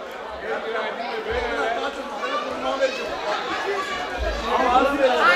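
A crowd chatters in a large, echoing hall.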